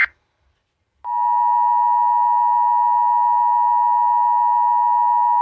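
A loud, steady two-tone alert tone sounds through a loudspeaker.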